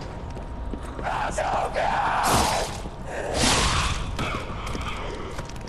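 A sword swishes and strikes in a fight.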